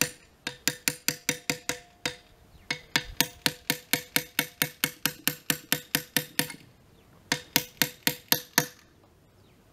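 A small hammer taps metal rapidly and evenly.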